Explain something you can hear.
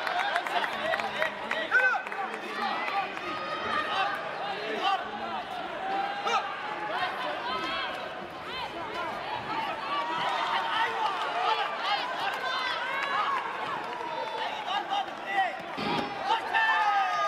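A crowd cheers and shouts throughout a large echoing arena.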